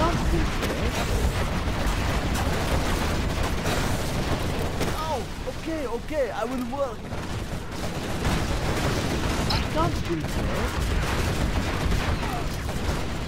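Explosions boom in a battle.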